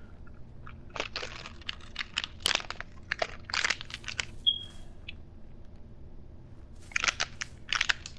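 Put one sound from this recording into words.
Footsteps rustle through grass and tread on pavement.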